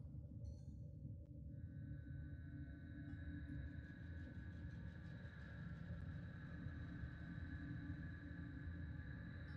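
A spaceship's engines hum low and steadily.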